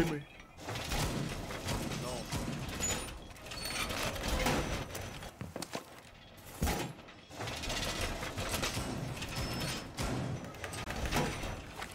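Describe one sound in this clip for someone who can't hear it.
Heavy metal panels clank and scrape into place.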